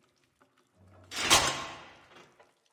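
A fist bangs hard on a wooden door.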